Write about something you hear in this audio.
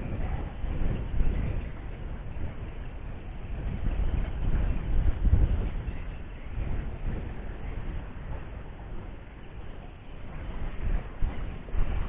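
A cast net's rope is hauled up from water hand over hand.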